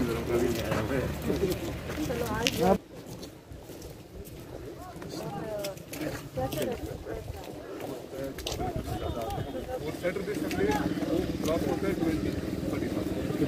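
Several men and women talk at once nearby, outdoors.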